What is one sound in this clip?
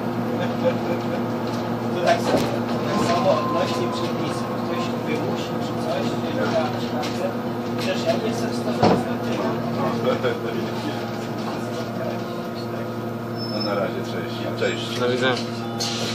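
Loose fittings inside a bus rattle and clatter over the road.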